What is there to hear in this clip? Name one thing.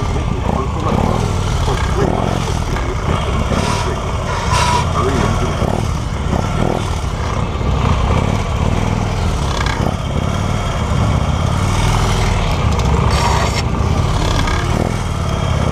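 A small engine buzzes and revs up and down close by.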